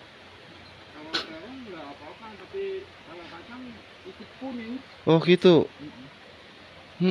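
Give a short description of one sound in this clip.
A man talks nearby in a lively voice.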